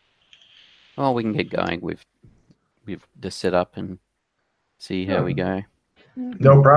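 An older man speaks calmly through a headset microphone over an online call.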